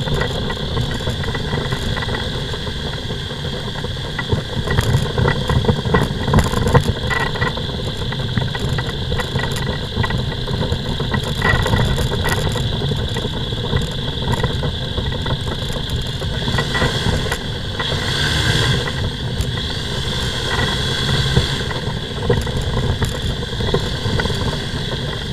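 A microlight's propeller engine drones loudly and steadily close by.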